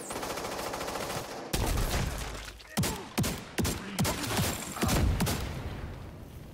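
Gunfire bursts out in loud, rapid shots.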